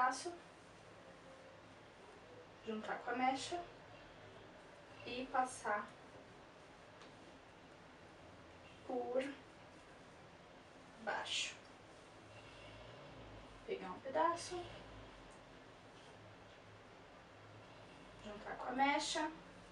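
A young woman speaks calmly nearby in short phrases.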